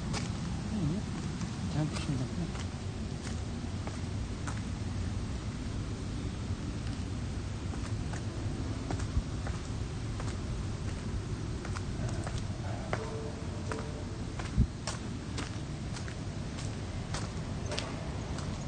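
A man speaks quietly, close to a microphone.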